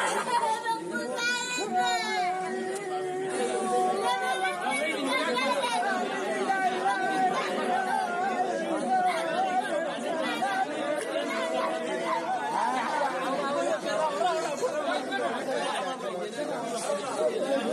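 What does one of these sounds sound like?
A young girl cries and wails loudly up close.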